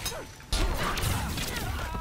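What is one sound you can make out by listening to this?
A burst of sparks crackles on impact.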